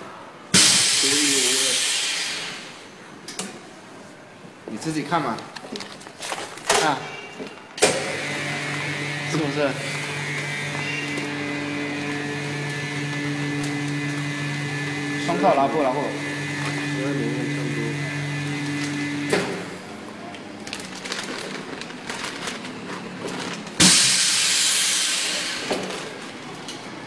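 Air rushes out of a vacuum chamber with a loud hiss.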